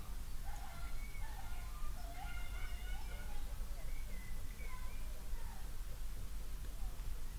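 A soft pastel stick rubs across paper.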